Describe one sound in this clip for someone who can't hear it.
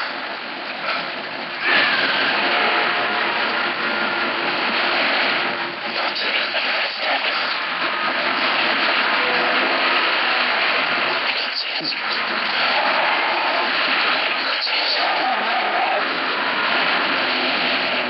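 Water gushes and splashes loudly.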